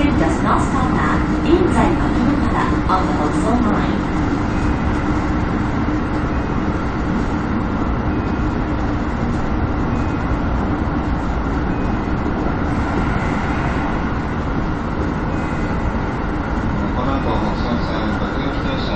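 A train rumbles steadily along the rails from inside the cab.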